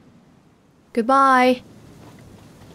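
A middle-aged woman speaks briefly and quietly.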